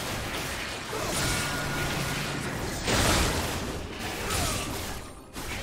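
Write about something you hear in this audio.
Game spell effects whoosh and burst during a fight.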